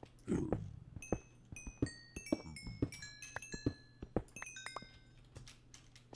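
Short high chimes ring in quick succession.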